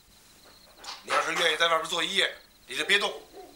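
A middle-aged man calls out loudly from nearby.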